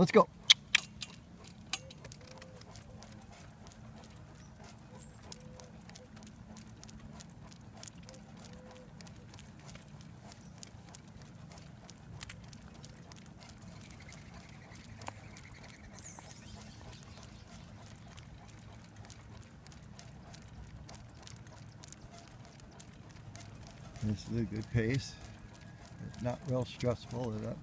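Wheels roll steadily over rough pavement.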